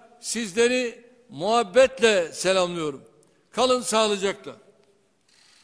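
A man speaks forcefully through a microphone.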